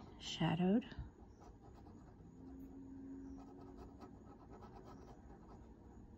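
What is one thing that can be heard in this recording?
A pen tip scratches softly across paper.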